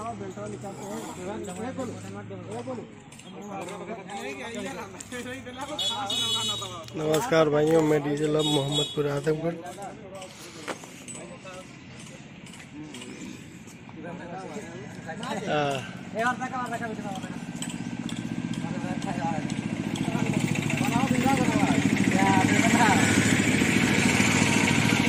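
Several young men talk casually with one another outdoors, close by.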